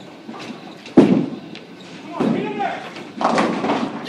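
A bowling ball rolls down a lane with a low rumble in a large echoing hall.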